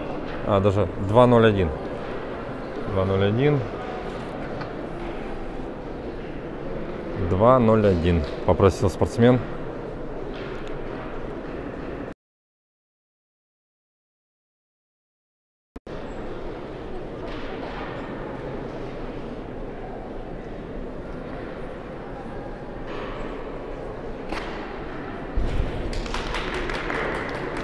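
People murmur quietly in a large echoing hall.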